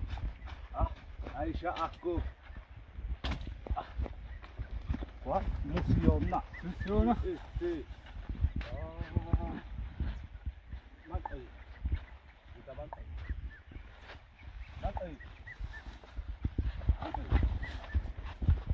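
Young men call out to each other outdoors.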